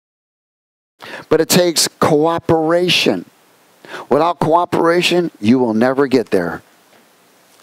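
A man speaks calmly into a headset microphone.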